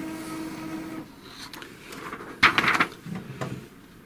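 A sheet of paper rustles as it is pulled from a printer.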